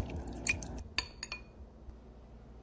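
A spoon scrapes and taps against a glass bowl.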